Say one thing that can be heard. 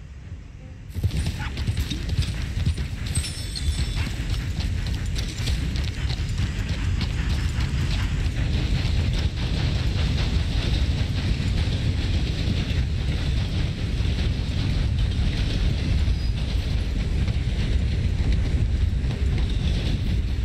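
A horse's hooves thud steadily on the ground.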